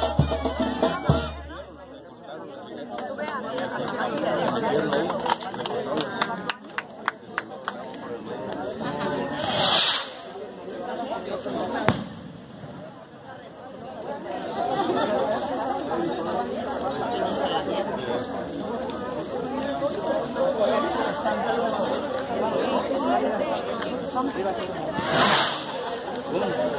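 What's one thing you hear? A crowd of men and women murmurs and talks nearby outdoors.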